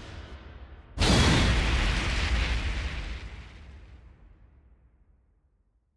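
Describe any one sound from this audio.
A heavy impact booms and slowly dies away.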